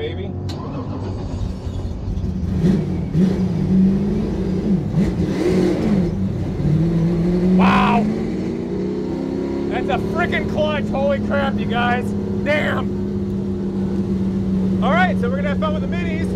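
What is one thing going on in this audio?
A race car engine roars and revs up and down from inside the cabin.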